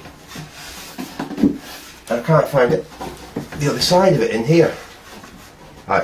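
A hand brushes across a wooden surface.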